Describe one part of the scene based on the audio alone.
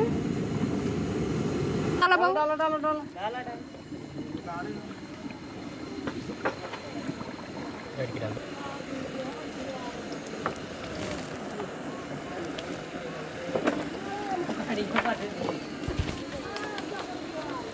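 Hot oil sizzles and bubbles in a pan.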